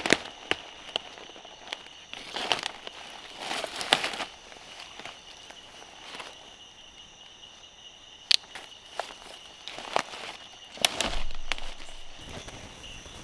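Boots crunch and rustle through dry leaves on the forest floor.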